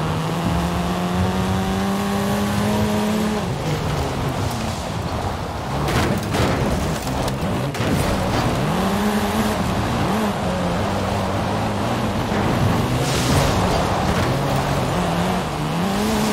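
A car engine revs and drones, rising and falling in pitch.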